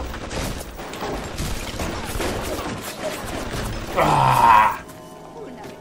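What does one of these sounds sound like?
A shotgun fires.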